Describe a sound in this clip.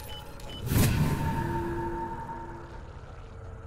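A bright electronic tone rings out and fades.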